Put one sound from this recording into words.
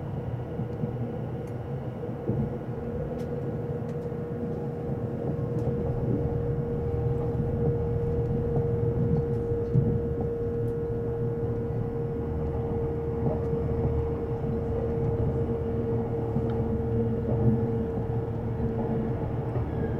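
A steady whine from the train's motor runs underneath.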